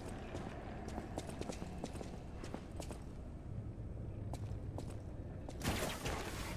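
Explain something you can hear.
Footsteps clack on a hard stone floor.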